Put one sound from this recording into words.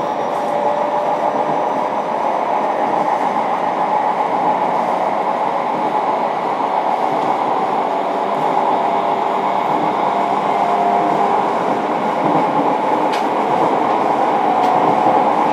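An electric train idles with a steady hum.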